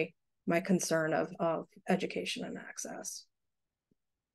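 A woman speaks calmly and with some animation through an online call.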